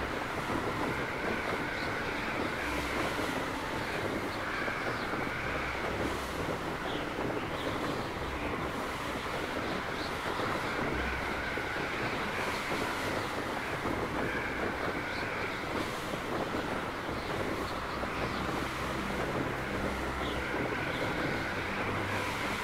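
Wind blows hard and steadily.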